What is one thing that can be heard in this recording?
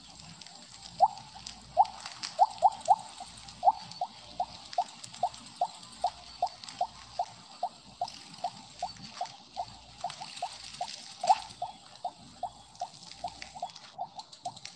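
Short game blips pop quickly, one after another.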